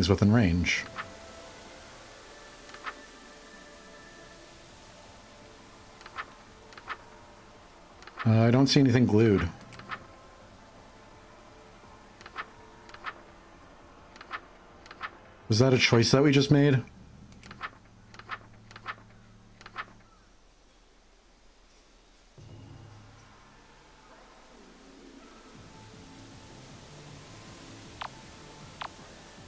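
Book pages flip with short soft clicks.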